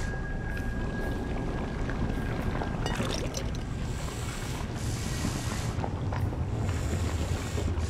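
Flames roar and crackle as a creature burns.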